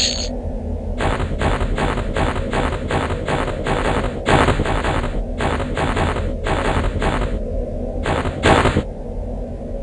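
Short clinking item sounds ring out quickly, one after another.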